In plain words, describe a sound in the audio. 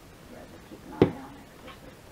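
A plastic bottle is set down on a table with a knock.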